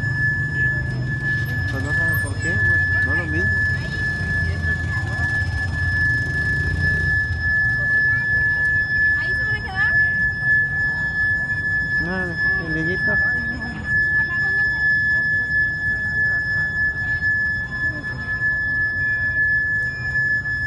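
Motorcycles ride past on the street.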